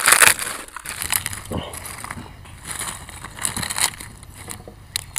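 Soft food squelches as fingers mash it together.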